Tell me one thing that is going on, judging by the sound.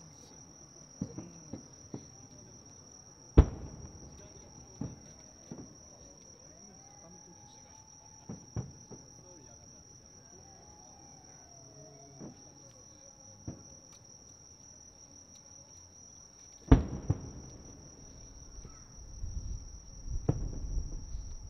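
Fireworks boom and crackle in the distance, with sharp bangs echoing.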